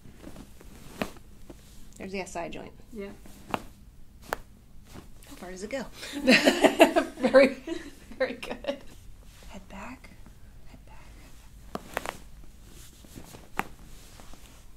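Joints crack with sharp pops several times.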